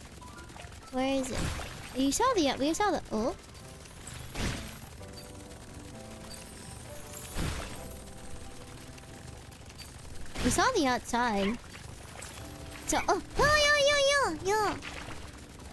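A young woman speaks animatedly into a microphone, her voice rising and falling in pitch.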